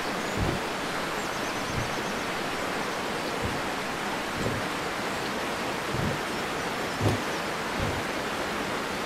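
Wooden rings click and knock as they turn.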